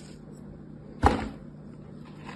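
A clump of sand drops into a plastic tray with a dull thud.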